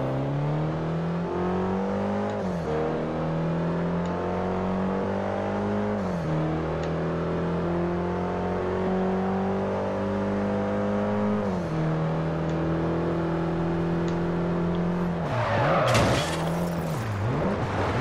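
A car engine revs hard, climbing in pitch and dropping with each gear change.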